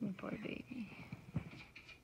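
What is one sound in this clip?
A hand rubs a cat's fur, rustling softly against bedding.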